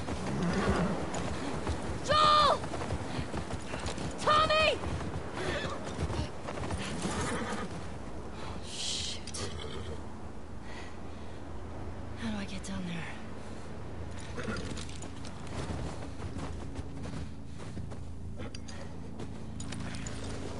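A horse's hooves crunch slowly through snow.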